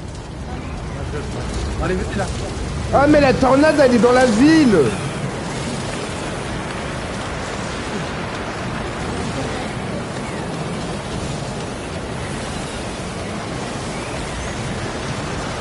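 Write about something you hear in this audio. A storm wind roars and whooshes steadily.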